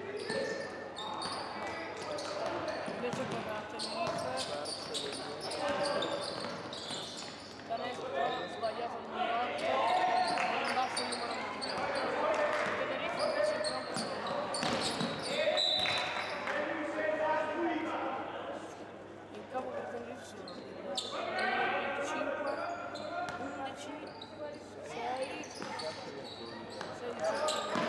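Players and coaches call out across a large echoing hall.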